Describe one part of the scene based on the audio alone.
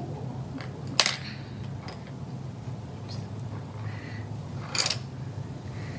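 Coloured pencils clink together.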